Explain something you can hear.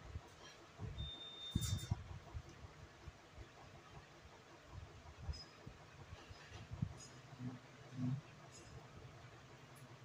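Liquid trickles thinly from a cup.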